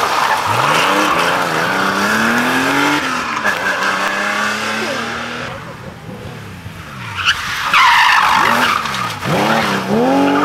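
Tyres scrabble and skid on loose gravel.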